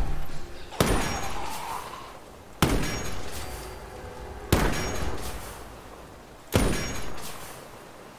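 A heavy gun fires loud single shots that boom and echo away.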